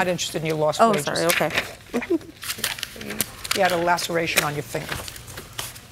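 An older woman speaks firmly and sternly.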